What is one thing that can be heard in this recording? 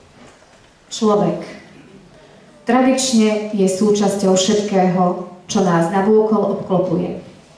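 A man speaks calmly through a microphone over loudspeakers.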